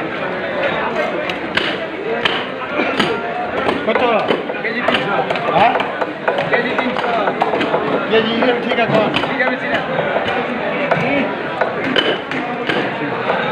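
A knife chops and scrapes through fish flesh.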